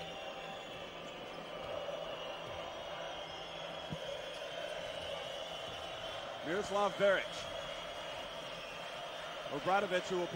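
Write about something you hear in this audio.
A large indoor crowd murmurs steadily in an echoing arena.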